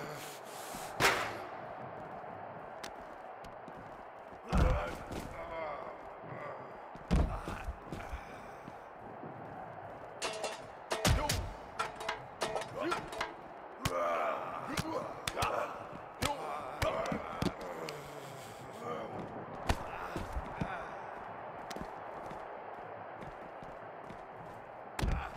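Heavy blows land with loud, sharp thuds.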